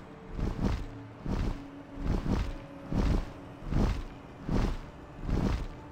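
A dragon's wings beat in heavy, regular whooshes.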